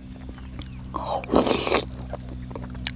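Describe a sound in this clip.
A man slurps noodles loudly, close by.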